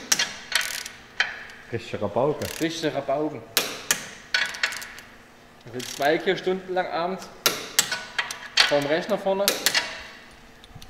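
A metal wrench clicks and clanks against a car's underside.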